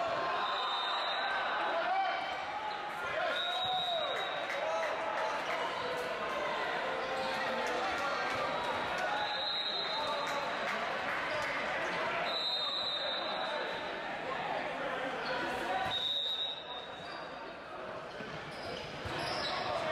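Sneakers squeak sharply on a hard court floor in an echoing hall.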